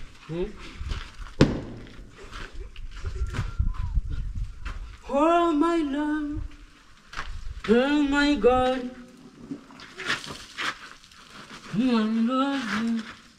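Water splashes and a cloth scrubs a motorbike.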